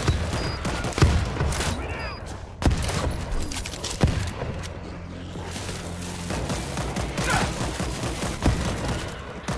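A crossbow fires with sharp thwacks.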